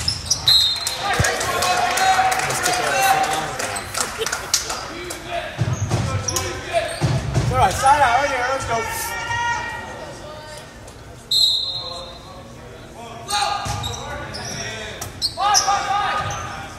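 Spectators cheer and shout loudly in an echoing gym.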